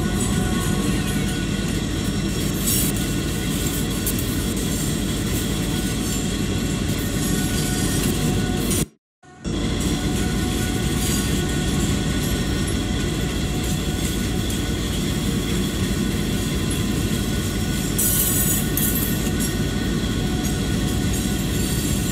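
A diesel locomotive engine rumbles steadily as a train rolls along the rails.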